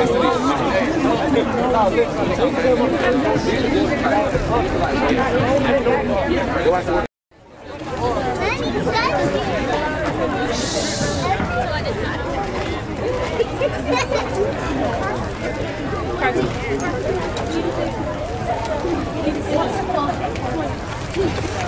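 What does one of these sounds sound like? A marching band plays brass instruments loudly outdoors.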